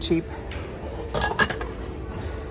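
Glassware clinks softly.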